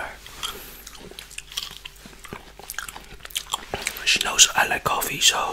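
A man chews and smacks his lips close to a microphone.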